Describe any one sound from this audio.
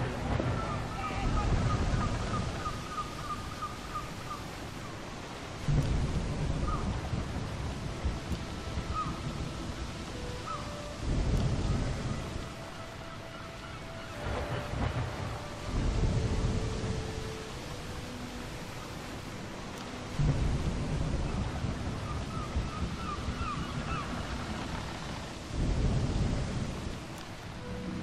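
Waves surge and crash in a stormy sea.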